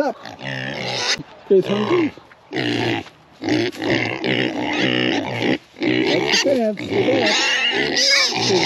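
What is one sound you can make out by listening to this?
Pigs grunt and snuffle close by.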